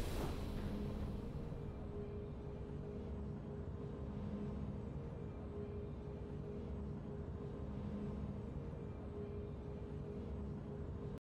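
Soft game music plays on quietly.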